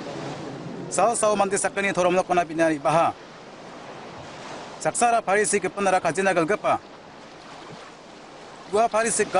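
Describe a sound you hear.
An adult man speaks calmly and close by.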